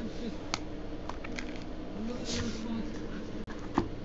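Cardboard cards rustle as they are handled.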